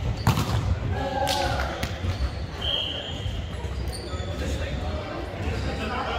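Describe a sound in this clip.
Young men call out and cheer in an echoing hall.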